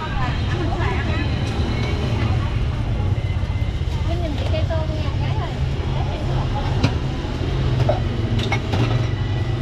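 A ladle clinks against metal pots and bowls.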